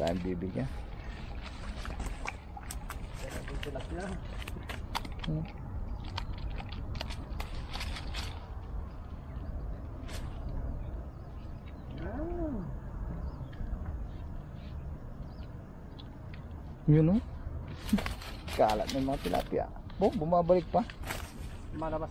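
A fishing net rustles and crackles as hands pull it through dry grass.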